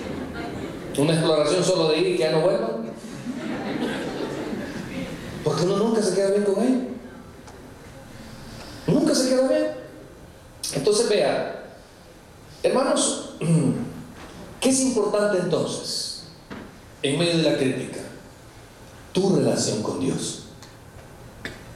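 A man preaches with animation into a microphone, in bursts with pauses, in a reverberant hall.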